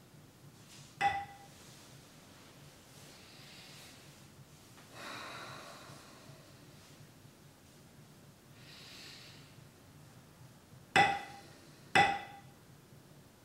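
A small bell is struck and rings briefly.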